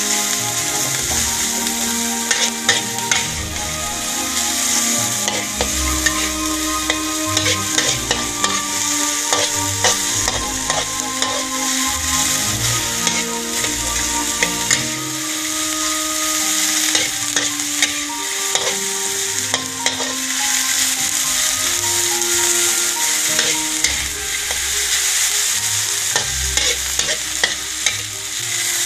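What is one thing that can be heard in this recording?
A spatula scrapes and clicks against a metal pan.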